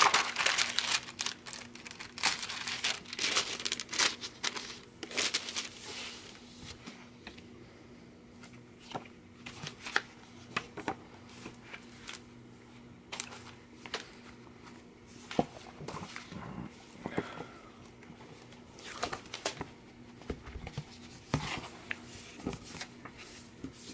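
Paper pages rustle and flap as a book is leafed through.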